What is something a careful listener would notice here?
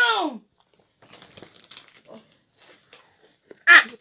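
Plastic packaging rustles and crinkles as it is handled.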